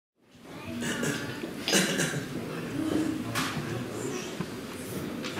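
Actors speak with animation on a stage in a reverberant hall.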